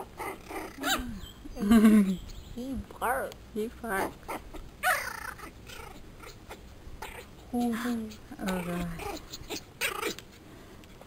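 Small puppies yip and whine as they play.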